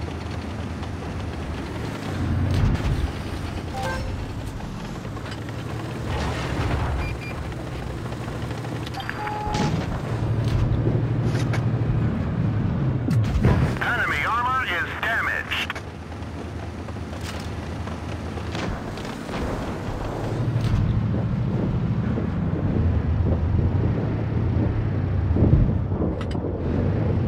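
Tank guns fire with loud booms.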